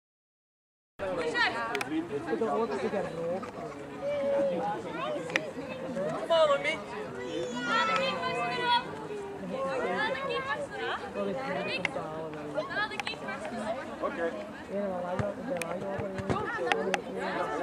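A crowd of spectators, men and women, chatter nearby outdoors.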